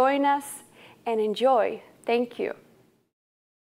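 A young woman speaks cheerfully and with animation into a close microphone.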